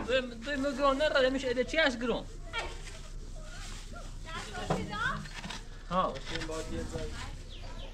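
A shovel scrapes and digs into sand and cement.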